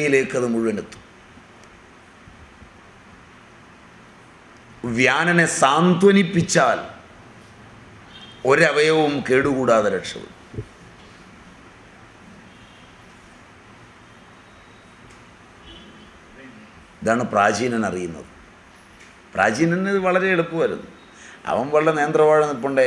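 An elderly man speaks calmly into a microphone, in short phrases with long pauses.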